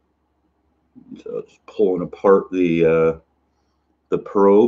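A man speaks close to the microphone.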